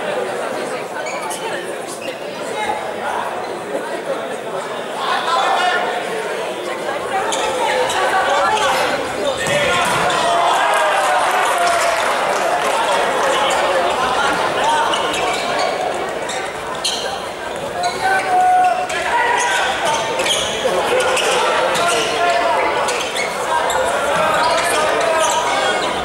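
Sneakers squeak sharply on an indoor court.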